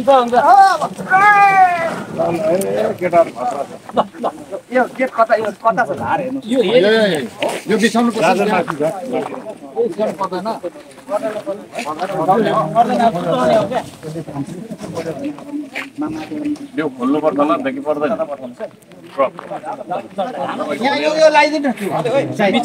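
Several men talk loudly and with animation close by, outdoors.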